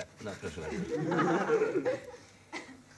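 A young man laughs heartily.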